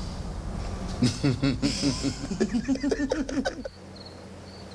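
A woman laughs loudly close by.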